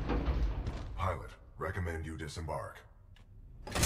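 A man speaks casually into a close microphone.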